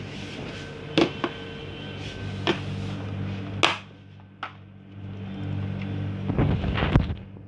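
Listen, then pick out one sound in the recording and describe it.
Plastic clicks and taps sharply now and then.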